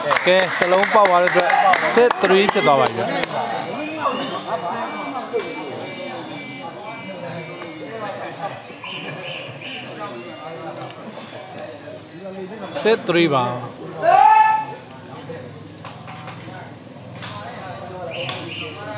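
A crowd of men chatters and shouts in a large echoing hall.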